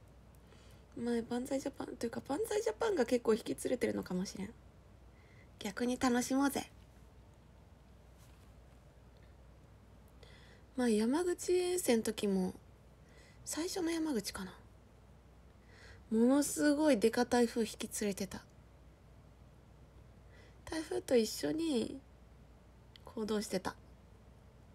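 A young woman talks brightly and playfully close to a microphone, in short bursts with pauses.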